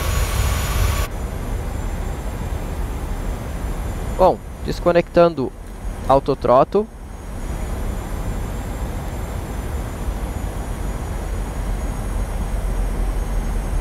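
Jet engines hum in a steady low drone.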